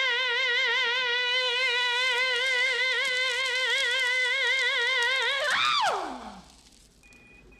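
A man sings a long high note with a strong wavering vibrato, then the voice slides down and stops.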